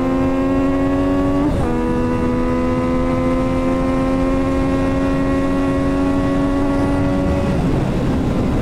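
A motorcycle engine whines loudly at high speed, shifts up a gear and keeps climbing.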